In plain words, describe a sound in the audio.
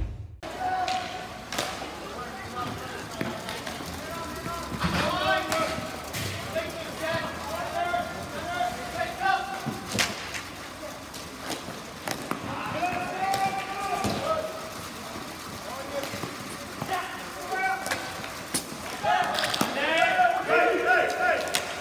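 Children and adults shout and call out across an outdoor rink.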